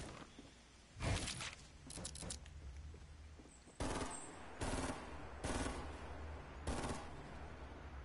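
Wooden panels snap into place with sharp knocks.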